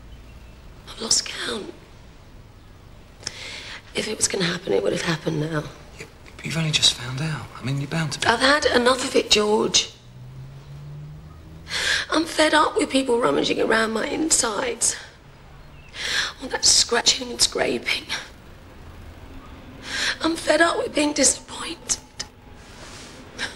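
A man speaks softly and gently up close.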